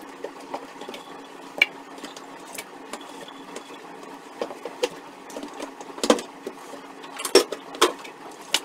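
Dishes and utensils clink and clatter as they are handled.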